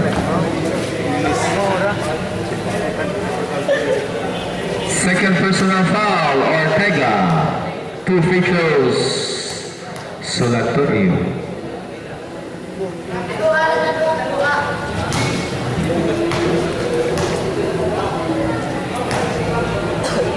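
Young men shout and call out across a large echoing hall.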